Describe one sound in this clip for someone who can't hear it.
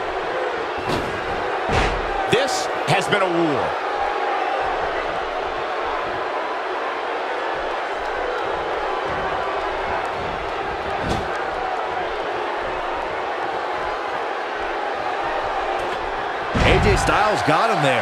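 Bodies slam down onto a wrestling ring mat with heavy thuds.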